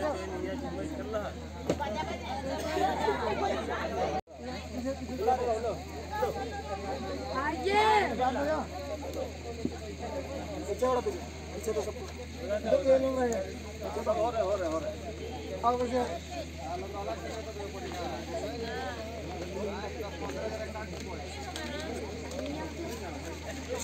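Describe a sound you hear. A crowd of men and women chatter nearby throughout.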